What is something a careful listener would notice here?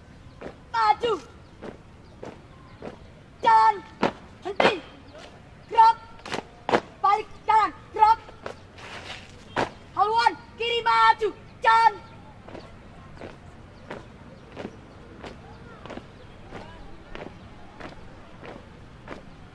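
Boots stamp in rhythm on pavement outdoors.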